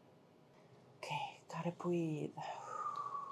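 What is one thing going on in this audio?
A young woman speaks briefly and casually, close by.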